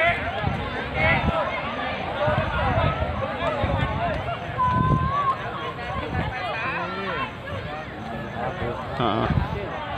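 A crowd of fans chants and cheers loudly outdoors.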